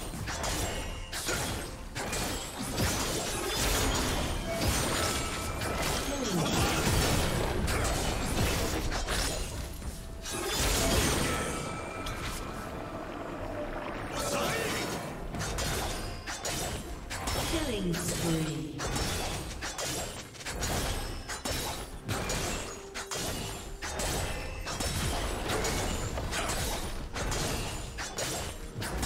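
Game spell effects and attacks crackle and clash.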